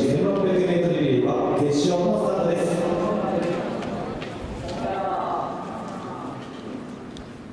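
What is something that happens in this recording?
Spectators nearby cheer and shout in an open stadium.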